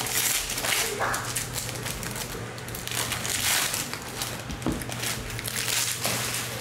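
Foil packs crinkle and rustle in someone's hands, close up.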